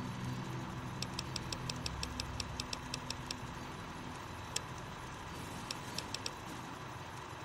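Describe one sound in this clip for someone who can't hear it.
Short menu clicks tick rapidly in quick succession.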